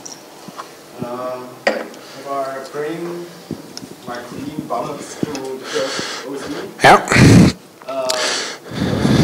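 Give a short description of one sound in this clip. A man speaks with animation through a microphone in a large room with a slight echo.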